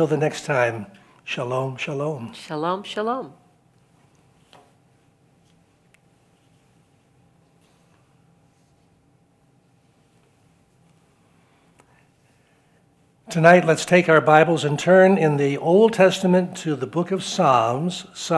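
An elderly man speaks warmly into a microphone, pausing now and then.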